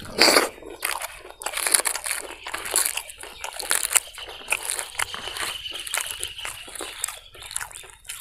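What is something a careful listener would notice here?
Fingers squish and mash soft food close by.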